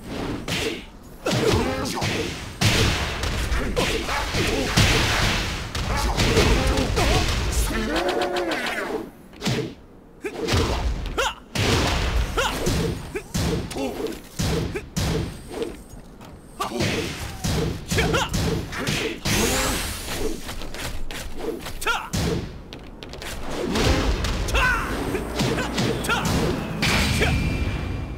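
Punches and kicks land with sharp thuds and cracks.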